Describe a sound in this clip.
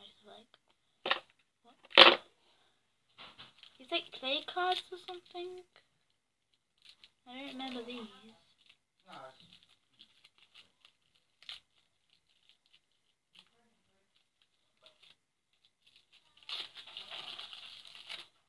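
Plastic packaging crinkles and rustles in a girl's hands.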